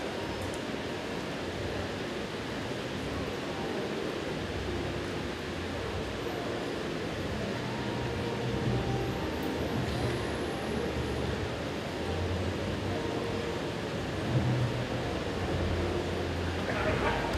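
A large crowd murmurs and chatters in a big hall.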